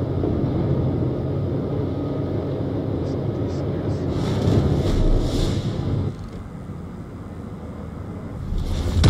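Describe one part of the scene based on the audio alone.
A warship's engines rumble low and steady.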